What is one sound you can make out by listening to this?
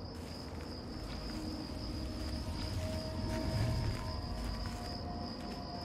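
Footsteps crunch softly on snowy ground.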